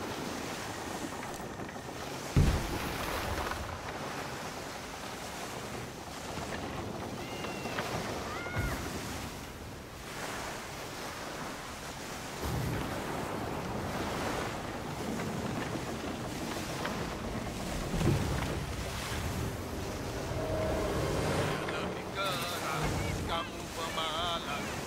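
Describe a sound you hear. A sailing ship's bow rushes through waves.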